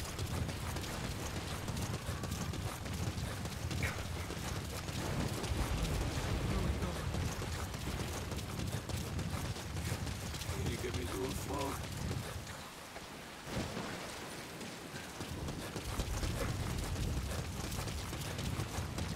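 Footsteps crunch over rocky ground.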